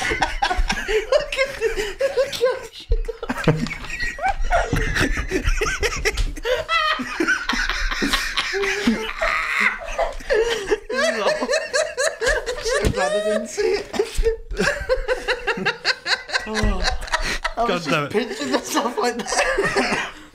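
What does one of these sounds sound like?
Young men laugh loudly and heartily.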